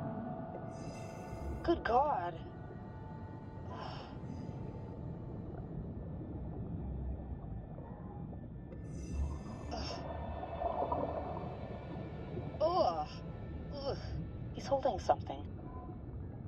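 A diver breathes out through a regulator, and bubbles gurgle in short bursts.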